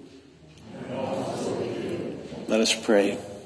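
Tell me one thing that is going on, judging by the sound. A congregation murmurs a response together.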